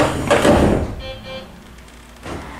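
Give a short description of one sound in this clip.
A door chime beeps.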